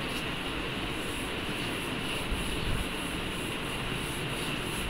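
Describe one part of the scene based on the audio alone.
A duster rubs across a chalkboard.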